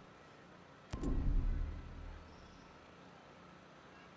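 A deep whoosh and chime sound as a game notification pops up.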